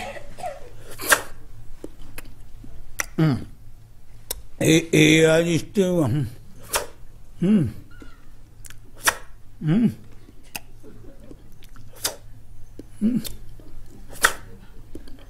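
A man makes loud slurping sounds, as if eating noodles.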